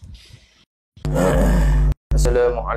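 A man speaks loudly and close to a microphone.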